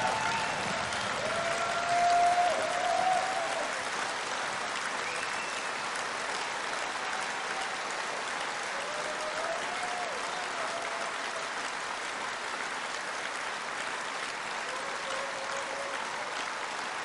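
People in a crowd cheer and shout.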